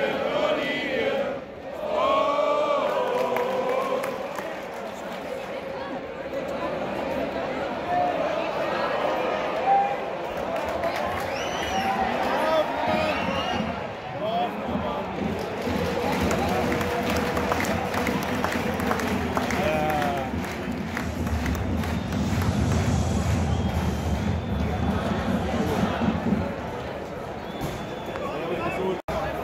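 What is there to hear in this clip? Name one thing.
Fans whistle and shout in a stadium crowd.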